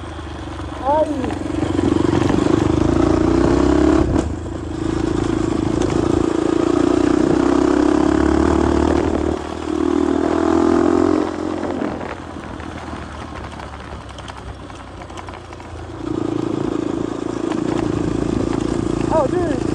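Tyres crunch over a dirt road.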